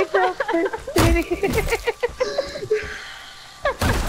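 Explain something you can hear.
A wooden door splinters under heavy blows.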